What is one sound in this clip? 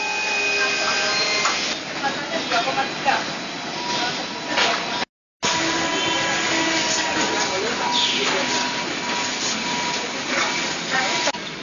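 Metal parts clink and click as a worker fits them by hand.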